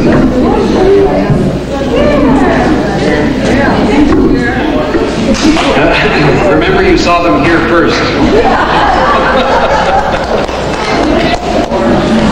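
An elderly man speaks through a microphone in an echoing hall.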